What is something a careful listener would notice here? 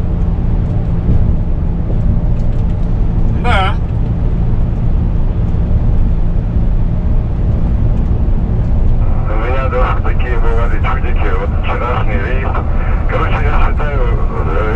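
A truck engine drones steadily inside the cab.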